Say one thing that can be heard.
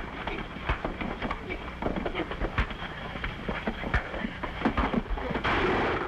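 Men grunt and struggle in a scuffle.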